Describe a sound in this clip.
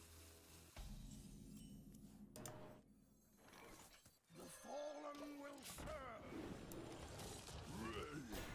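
Card game sound effects whoosh and chime.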